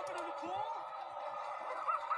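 A group of young men and women cheer and shout excitedly, heard through a small loudspeaker.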